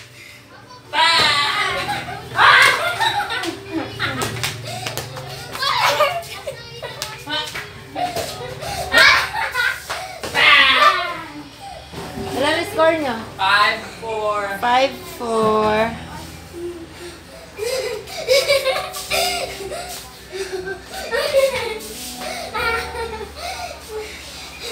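A young woman talks and laughs close by, in a lively voice.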